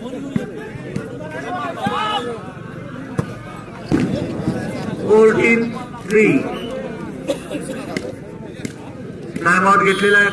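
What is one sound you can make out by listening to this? Men shout and call out to each other outdoors.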